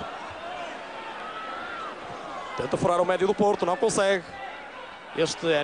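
A stadium crowd murmurs and roars in the distance.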